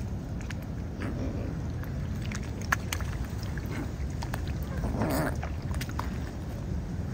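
A swan dabbles and sips at the water, making small splashes and drips.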